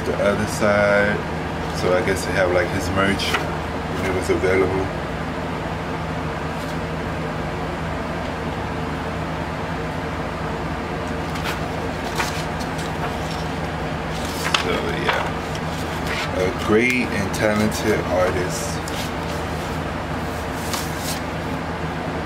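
Paper record sleeves rustle and slide as hands handle them.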